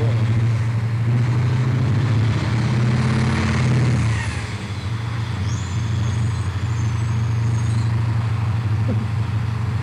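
A heavy truck's tyres crunch over rough dirt.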